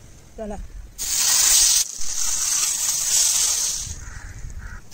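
Fish sizzles in a hot pan.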